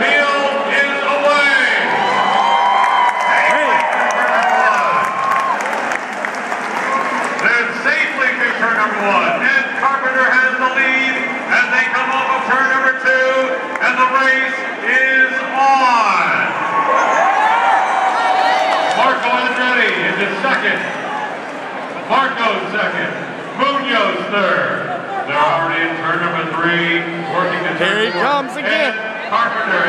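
A large crowd of men and women sings together outdoors, with sustained notes.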